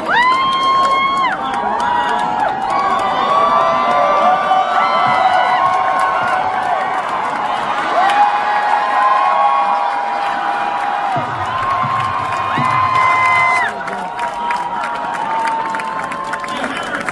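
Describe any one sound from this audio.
A large crowd cheers and screams loudly in a big echoing hall.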